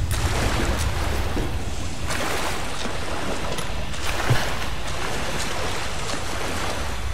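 Thick liquid sloshes and splashes as someone wades through it.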